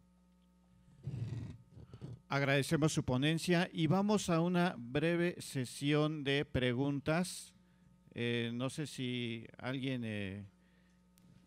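A man speaks calmly into a microphone, heard over loudspeakers.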